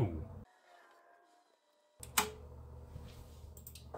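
A button clicks on a radio.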